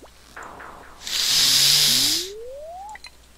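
A loud game splash sounds as a fish is landed.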